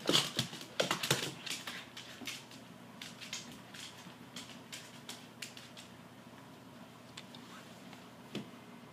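A dog's claws click and scrabble on a hard wooden floor.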